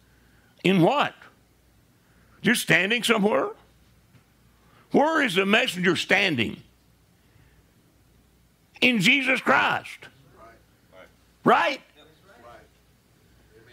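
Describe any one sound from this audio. An elderly man preaches forcefully in short bursts, heard close up in a room.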